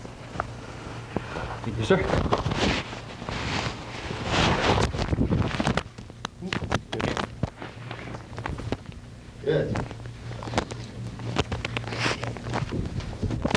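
Feet shuffle and scuff on a carpet.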